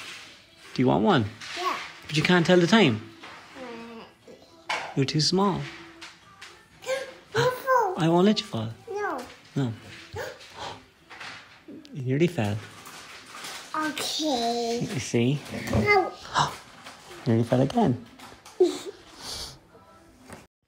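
A toddler talks and babbles close by.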